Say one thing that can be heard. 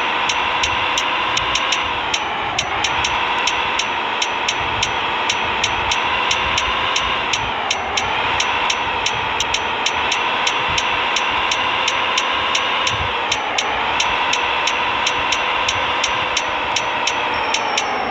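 A truck engine drones steadily, dipping in pitch at each gear change.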